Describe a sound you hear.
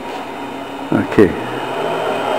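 A switch clicks on a machine.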